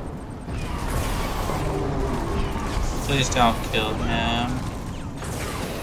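Laser weapons zap and crackle in a game.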